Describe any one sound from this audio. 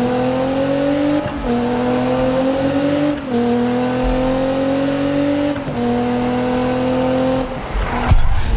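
A car engine roars at high revs, climbing in pitch and dropping with each gear shift.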